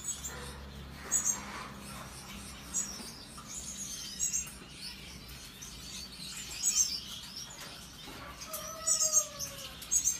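Gouldian finches give short, high chirps.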